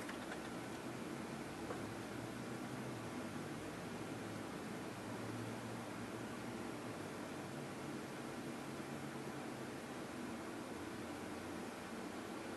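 Hair rustles softly as hands braid it.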